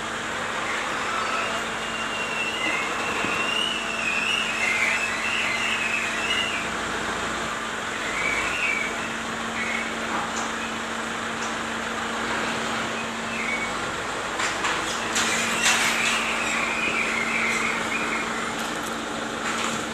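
A rock scrapes and rustles against a plastic sack.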